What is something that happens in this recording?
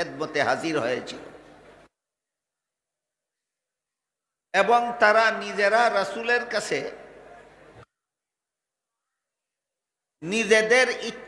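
An elderly man preaches with animation through a microphone and loudspeakers, with echo.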